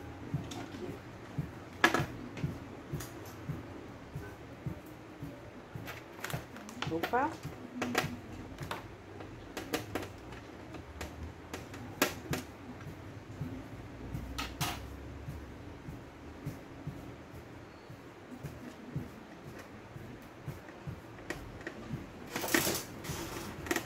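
Small plastic and metal parts click and tap as hands work on a flat panel.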